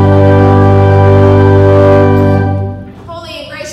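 A pipe organ holds a loud, sustained chord in an echoing hall, then stops.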